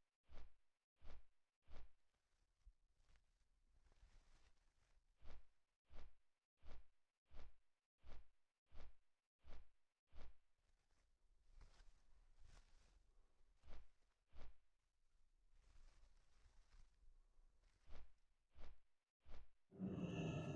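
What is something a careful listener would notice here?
Large wings flap in slow, regular beats.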